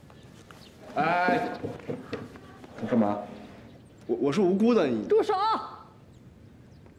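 A young man speaks defensively.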